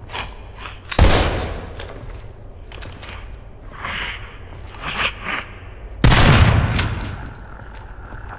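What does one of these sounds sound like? A shotgun fires loudly twice, with a booming echo.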